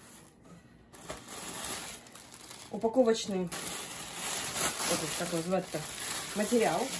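Plastic air cushions rustle and crinkle as they are lifted out.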